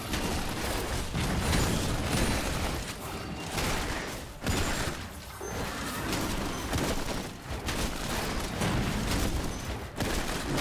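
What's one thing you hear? Game spells burst and crackle during a fight.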